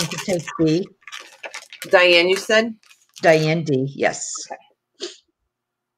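A plastic sheet crinkles and rustles as it is handled.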